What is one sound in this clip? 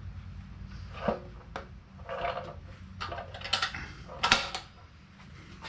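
A hand rubs an abrasive along a wooden ax handle.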